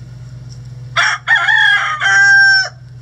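A hen squawks loudly.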